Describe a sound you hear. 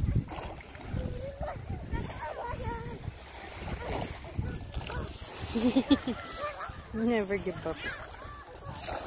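A young child talks and calls out nearby.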